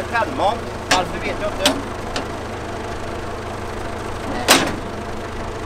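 A tractor's metal mower arm clanks as it is folded up.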